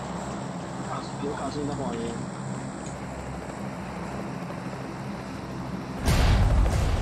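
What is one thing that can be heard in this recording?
A helicopter's rotor thumps and hums steadily.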